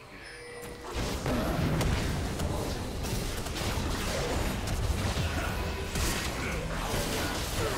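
Game combat effects clash and burst in quick succession.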